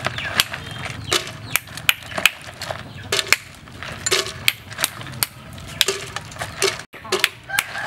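Liquid pours and splashes into a jar of ice.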